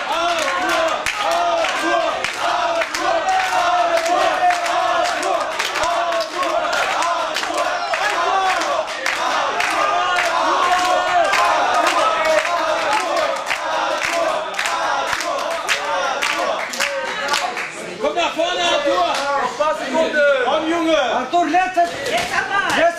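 A crowd of men and women shouts and cheers in an echoing hall.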